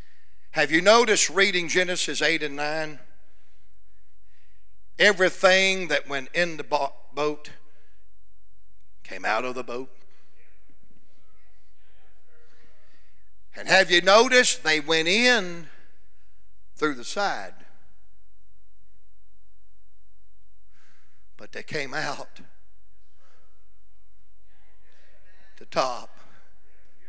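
A middle-aged man preaches with animation through a microphone, in short bursts with long pauses.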